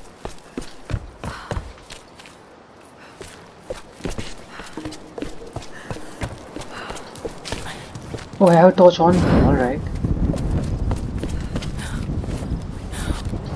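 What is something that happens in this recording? Footsteps crunch on stone and gravel.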